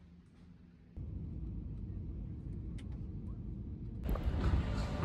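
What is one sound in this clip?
Airplane engines drone steadily.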